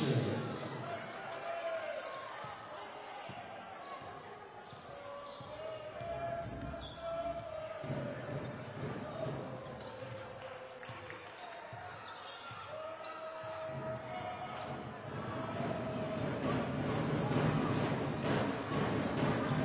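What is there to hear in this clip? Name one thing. A basketball bounces on a hard wooden court.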